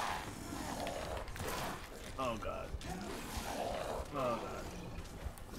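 A monster growls and snarls up close.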